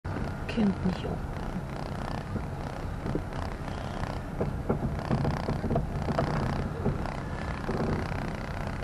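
Tyres roll slowly over a paved road.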